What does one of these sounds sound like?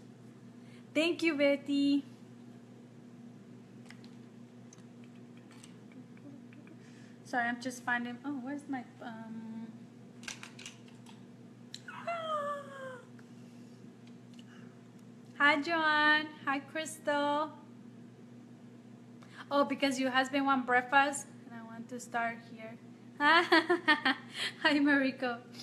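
A young woman speaks close to a microphone in short, animated bursts.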